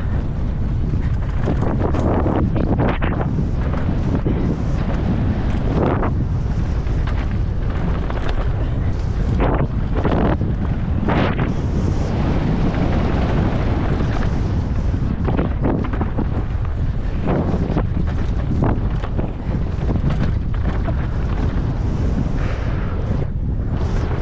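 Wind rushes and buffets loudly past a fast-moving rider.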